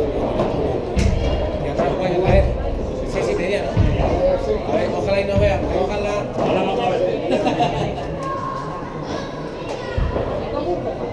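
Padel rackets strike a ball with sharp pops in a large echoing hall.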